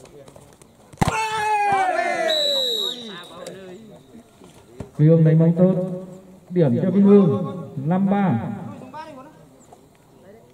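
Young men shout and call out to each other outdoors.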